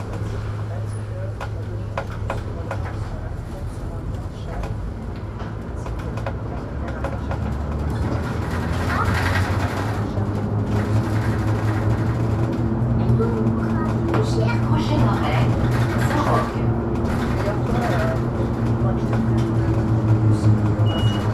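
A bus engine hums steadily from inside, rising in pitch as the bus speeds up.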